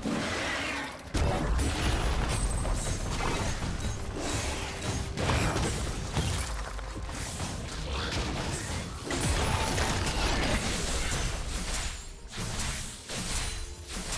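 Spell blasts and sword hits crash and crackle in a fast fight.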